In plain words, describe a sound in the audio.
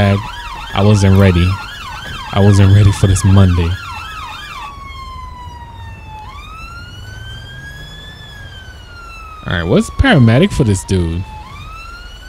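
A police car's horn blares in short, loud bursts.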